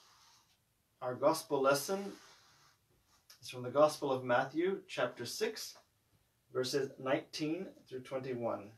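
A man reads aloud calmly, close by.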